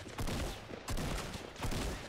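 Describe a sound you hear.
A gunshot cracks nearby.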